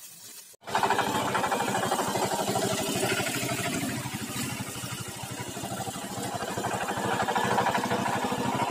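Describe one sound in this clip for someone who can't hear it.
A small diesel engine chugs steadily close by.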